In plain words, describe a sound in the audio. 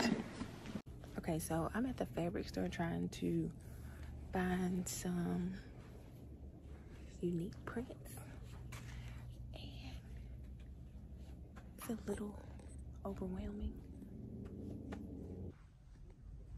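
A young woman talks quietly and close by.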